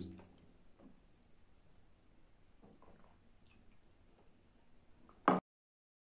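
A young man sips a drink.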